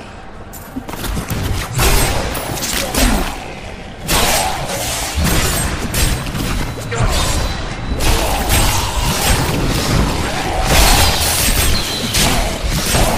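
A video game hero fights a crowd of monsters with loud magic blasts and hits.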